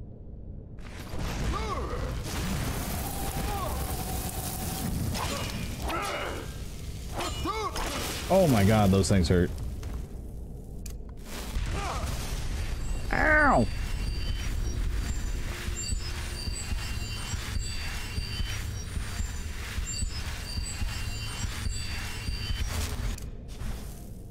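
Magic flames roar and crackle.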